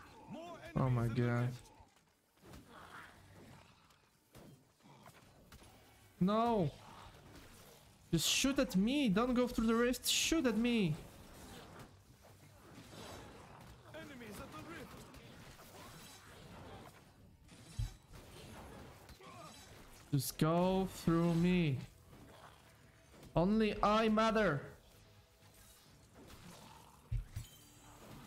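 Weapons clash and magic blasts in a fast video game fight.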